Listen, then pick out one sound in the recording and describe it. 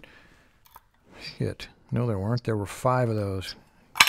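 Small metal tools click and tap against a wooden tray.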